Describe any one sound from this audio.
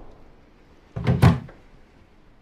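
A locked wooden door rattles in its frame.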